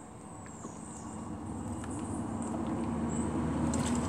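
Liquid gurgles as a woman drinks from a bottle.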